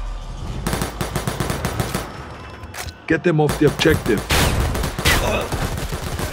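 A rifle fires rapid bursts of gunshots at close range.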